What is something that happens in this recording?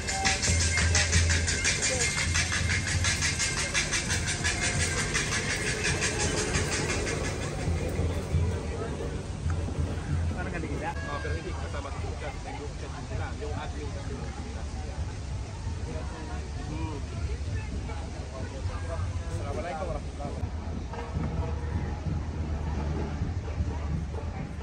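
A crowd of men and women chatters at a distance outdoors.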